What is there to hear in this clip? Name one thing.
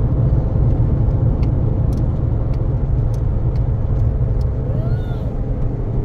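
Tyres rumble and crackle over a rough gravel road.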